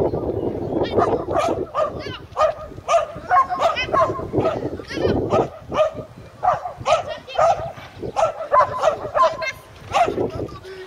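A dog barks repeatedly.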